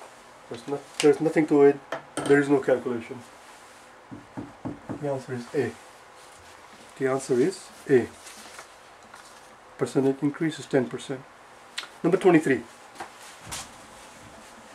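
A middle-aged man speaks clearly and steadily, close by, in short bursts.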